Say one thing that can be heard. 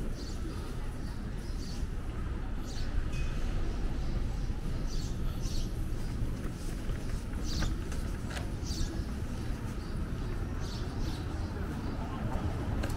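Footsteps tap on a pavement.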